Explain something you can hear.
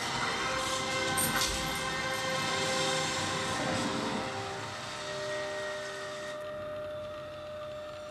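Music from a video game plays through a television loudspeaker.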